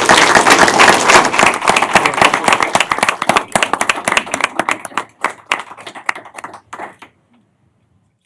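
A small crowd applauds in a room and the clapping fades out.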